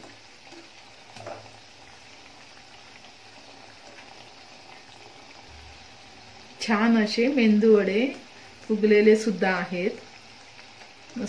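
Oil sizzles steadily in a frying pan.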